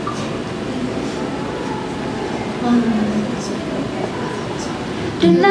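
A group of young women sing together through microphones, heard over loudspeakers in a hall.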